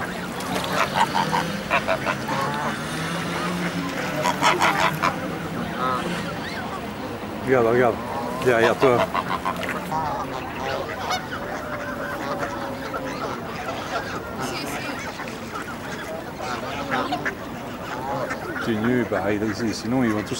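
Many geese honk and call close by.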